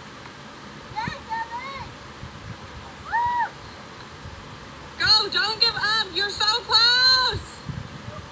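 A woman cries out with effort.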